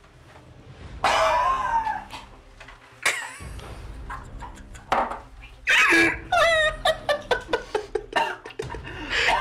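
A young man retches and gags loudly close by.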